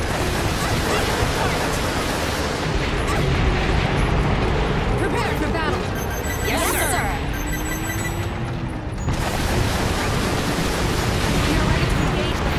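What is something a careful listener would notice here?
Missiles launch in rapid bursts with whooshing rushes.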